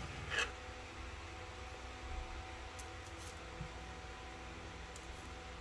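Dough pieces are set down softly on a baking tray.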